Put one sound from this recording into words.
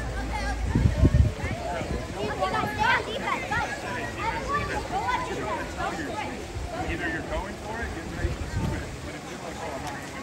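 Water splashes as swimmers move through a pool.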